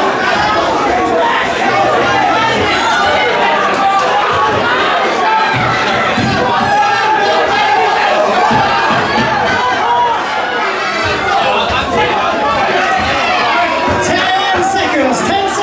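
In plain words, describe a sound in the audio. A crowd chatters and shouts throughout in a large, echoing hall.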